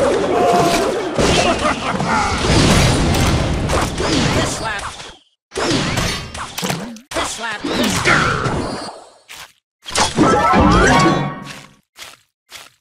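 Game sound effects of fighting and explosions clash and crackle.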